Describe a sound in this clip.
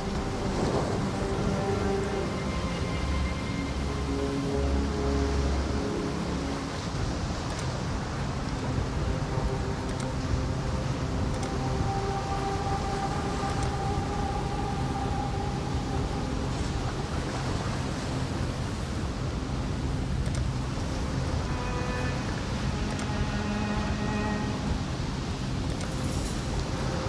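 Dark, droning game music plays steadily.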